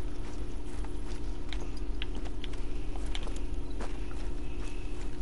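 Tall grass rustles with footsteps moving through it.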